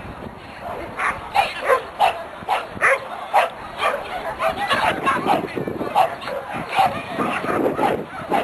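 A woman calls out loudly and excitedly outdoors.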